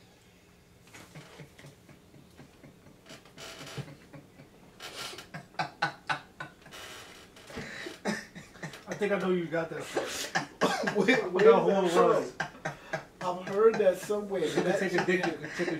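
Two young men laugh loudly together.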